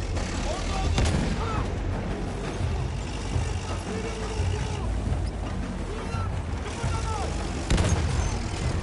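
Shells explode with loud booms.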